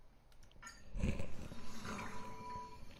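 A deep whoosh sweeps in as a menu changes.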